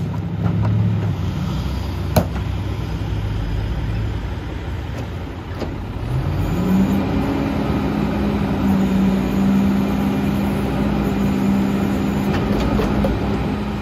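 A plastic bin knocks against metal.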